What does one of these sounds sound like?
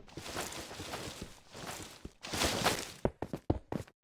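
Leaves crunch and rustle as they are broken in quick bursts.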